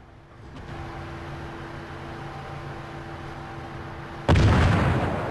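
A large ship's engine hums steadily.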